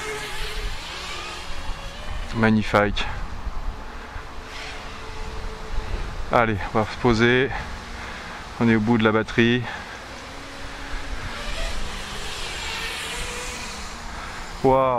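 Drone propellers whine steadily, rising and falling in pitch.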